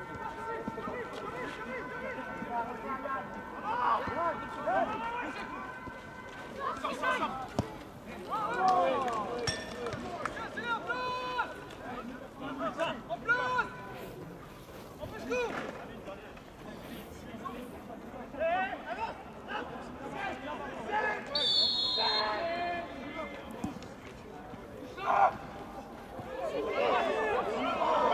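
Men in a crowd of spectators shout and call out outdoors.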